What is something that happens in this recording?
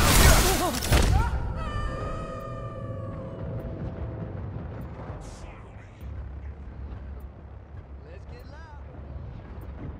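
Cars whoosh past on a road.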